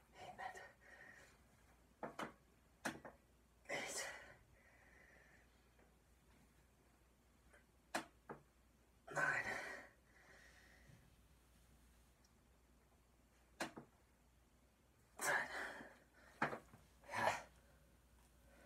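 A young man exhales forcefully with each lift.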